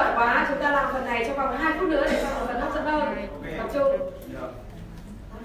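A woman speaks with animation through a microphone and loudspeakers.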